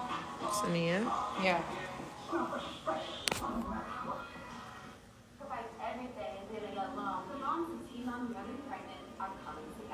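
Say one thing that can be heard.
A young woman talks casually and close to a phone microphone.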